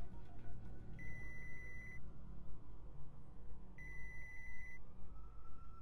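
A phone rings with a repeated electronic tone.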